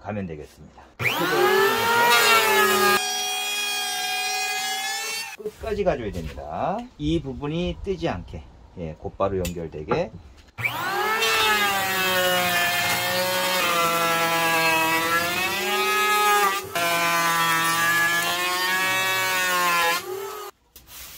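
An electric hand planer whines loudly as it shaves wood, winding up and down in pitch.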